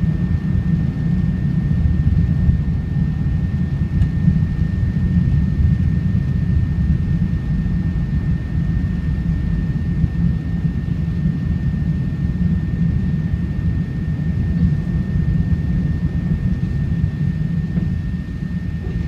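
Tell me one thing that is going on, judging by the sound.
Jet engines of a four-engine airliner roar in a low, steady rumble heard from inside the cabin during the climb after takeoff.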